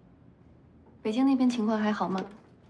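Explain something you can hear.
A young woman speaks nearby with a bright, friendly voice.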